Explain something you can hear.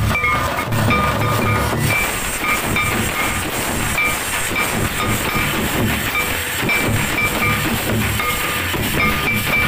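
Metal bells jingle in short repeated rings.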